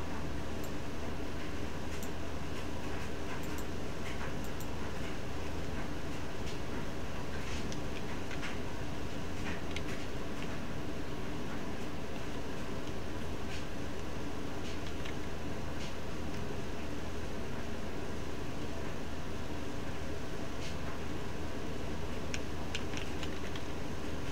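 Keys on a keyboard click in short, scattered bursts close by.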